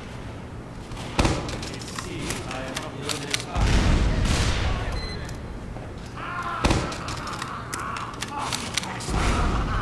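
A minigun spins up and fires in rapid bursts.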